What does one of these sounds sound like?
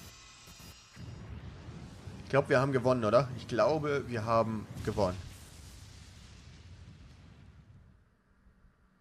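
A huge explosion booms with a deep roar that slowly fades away.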